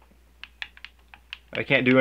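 A game controller button clicks.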